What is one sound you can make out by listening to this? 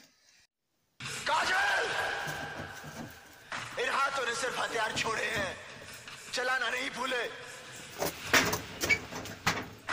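A young man speaks loudly and urgently, close by.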